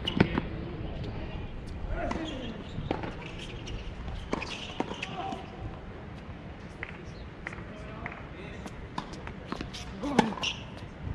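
Tennis balls are struck with rackets, with sharp pops outdoors.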